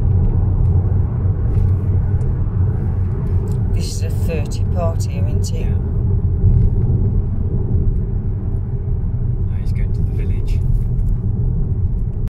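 Tyres rumble low and steady on a road.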